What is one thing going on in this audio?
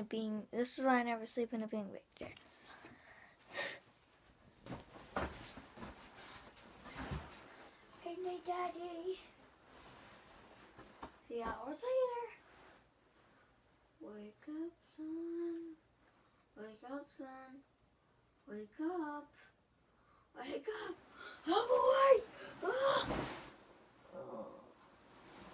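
A young boy talks with animation close to the microphone.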